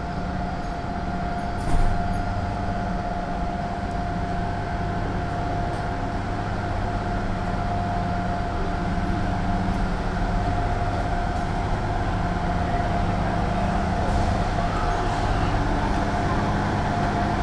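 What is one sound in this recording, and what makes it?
A bus engine idles with a steady hum nearby.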